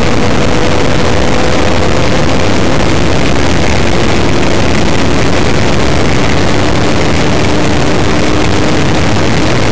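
A high-speed vehicle's engine roars steadily inside a cockpit.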